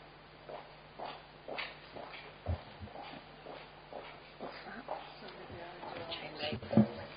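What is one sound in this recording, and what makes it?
A woman speaks calmly into a microphone in a large, echoing room.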